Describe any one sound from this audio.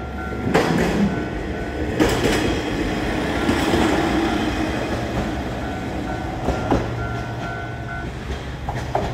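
A level crossing bell rings.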